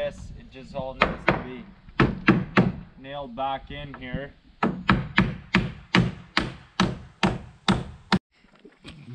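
A hammer strikes nails into wood in a steady rhythm.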